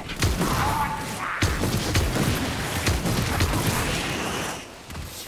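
Guns fire in quick, loud blasts.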